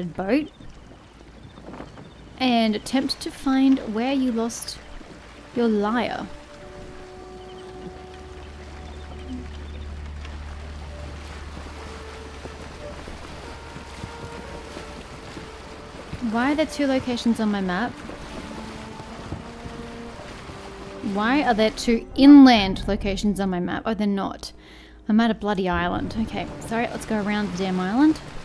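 Water splashes softly against a moving wooden boat.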